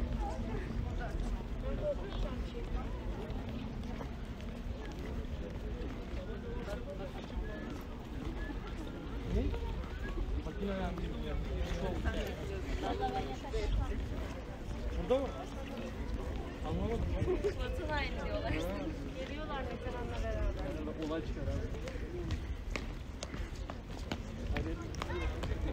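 Footsteps walk on stone paving outdoors.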